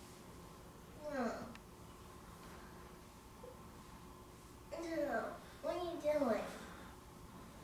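A young girl laughs and speaks playfully close by.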